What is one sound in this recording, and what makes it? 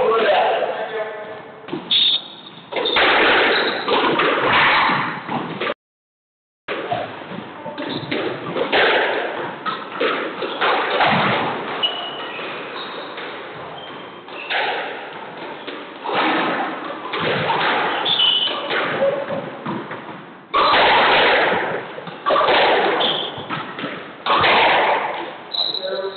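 A squash ball smacks off the walls with sharp echoing thuds.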